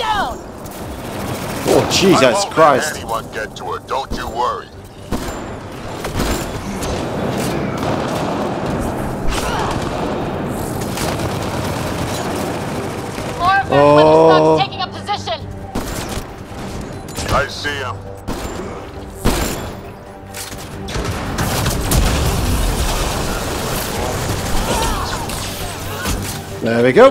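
Gunfire crackles and energy weapons zap in short bursts.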